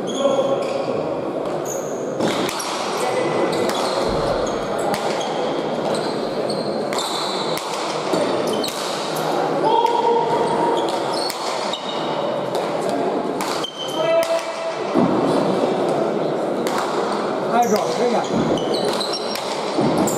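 Players' shoes squeak on the hard floor.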